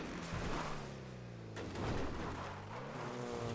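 Tyres skid on loose dirt.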